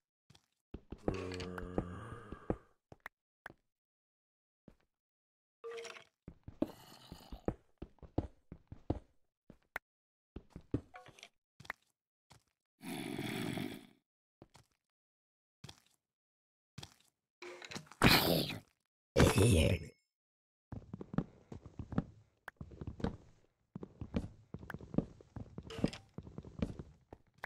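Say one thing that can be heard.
A pick chips at stone in quick, repeated knocks.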